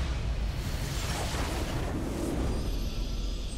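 A triumphant fanfare swells up.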